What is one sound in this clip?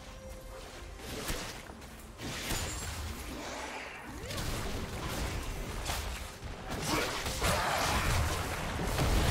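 Fantasy battle sound effects whoosh and crackle as spells strike.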